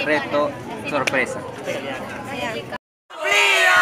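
Young people talk and laugh nearby.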